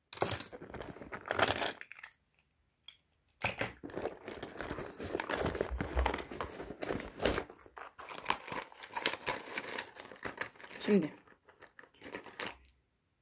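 Fabric rustles and brushes close by.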